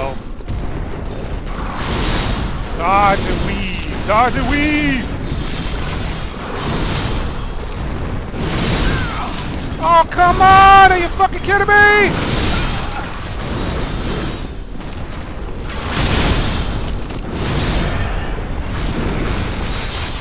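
A blade swishes through the air again and again.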